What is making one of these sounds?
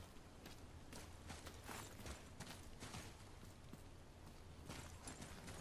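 Heavy footsteps thud on stone at a steady pace.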